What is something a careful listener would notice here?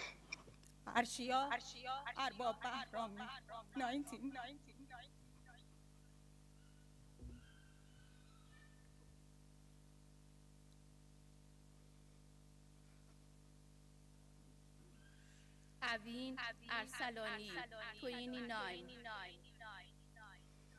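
A middle-aged woman speaks slowly and with emotion into a microphone, in a large echoing hall.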